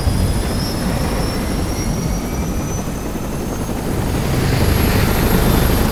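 Helicopter rotors thump loudly and steadily.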